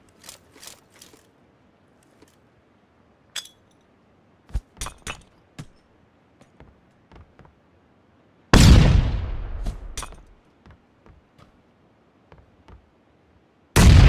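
Footsteps thud on a wooden floor indoors.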